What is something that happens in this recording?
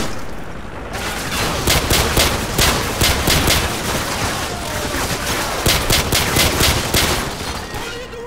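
A pistol fires single sharp shots.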